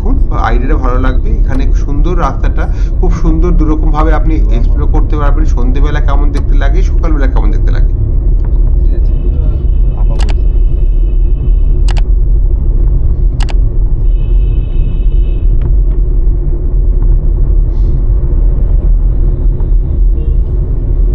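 A car engine hums steadily with tyres rumbling on the road.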